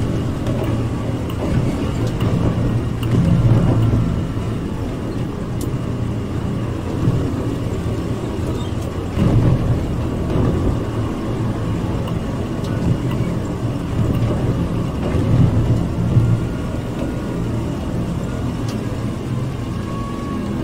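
A heavy engine rumbles steadily.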